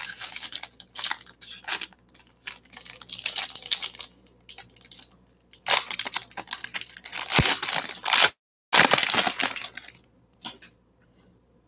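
Cards shuffle and rustle against each other.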